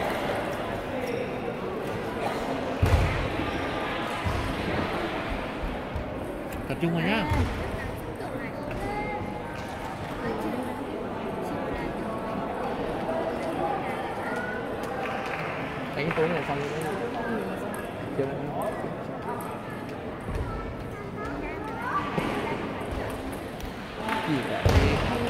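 A crowd of men and women chatter in the background.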